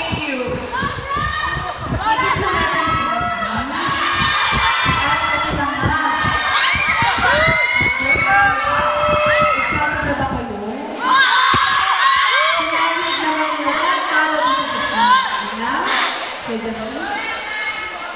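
A young woman speaks with animation through a microphone over loudspeakers.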